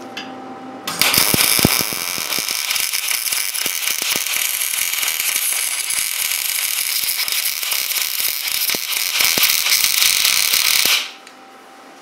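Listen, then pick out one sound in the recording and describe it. A welding arc crackles and sizzles loudly and steadily, then stops.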